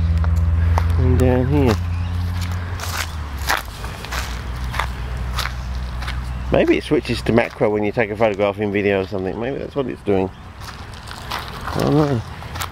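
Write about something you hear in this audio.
Footsteps crunch on dry leaves and twigs.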